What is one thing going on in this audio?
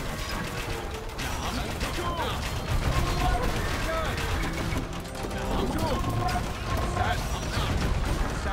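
Swords and weapons clash in a noisy battle.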